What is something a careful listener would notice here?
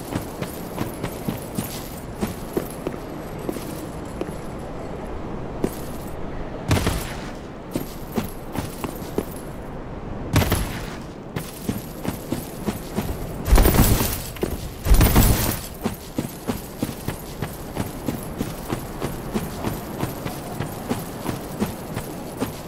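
Armoured footsteps crunch steadily over rock and gravel.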